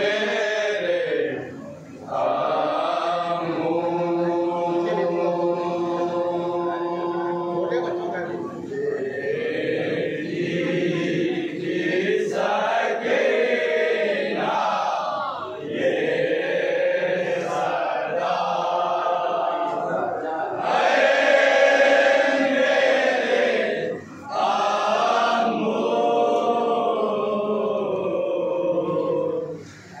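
A crowd of men chant along in unison.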